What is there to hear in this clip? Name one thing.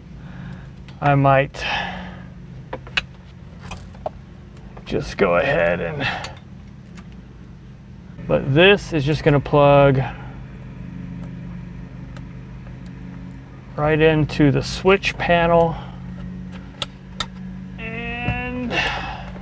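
Plastic parts click and tap as they are fitted.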